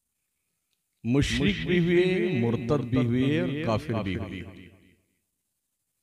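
A man chants loudly through a microphone in a reverberant hall.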